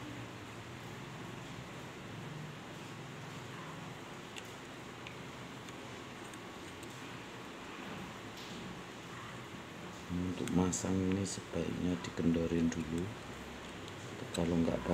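Small metal parts click and scrape softly as they are screwed together.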